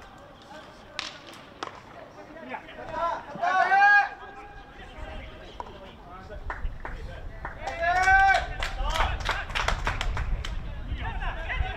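Hockey sticks strike a ball with sharp clacks.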